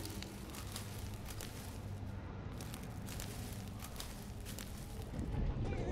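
A cat's claws scratch and rustle on climbing vines.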